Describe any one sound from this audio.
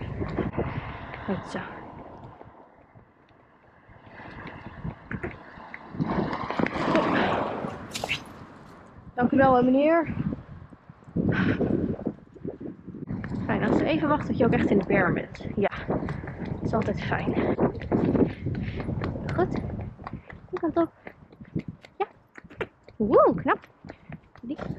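A pony's hooves clop steadily on asphalt.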